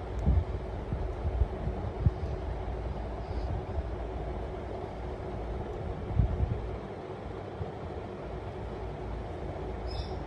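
A small bird rustles its feathers while preening.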